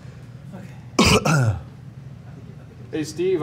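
A middle-aged man speaks calmly and briefly.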